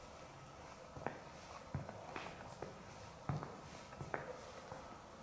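Footsteps tap softly on a hard floor.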